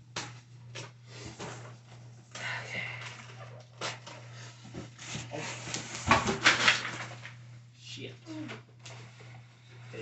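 Cardboard and packing material rustle.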